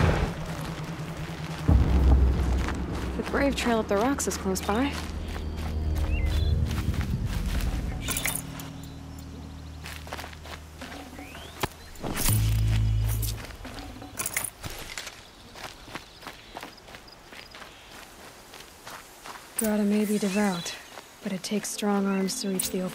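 Footsteps run over dirt and grass.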